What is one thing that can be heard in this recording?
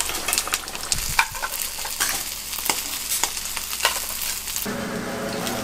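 Shells clink and scrape against a pan.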